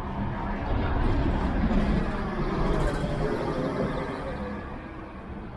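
A bus rumbles past on the street.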